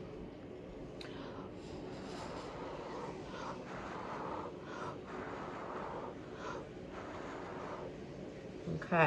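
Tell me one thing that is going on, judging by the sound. A woman blows gently and steadily through her lips.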